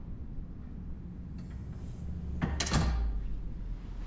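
A door latch clicks as a door opens.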